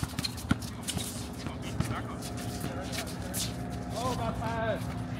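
A basketball bounces on an outdoor court.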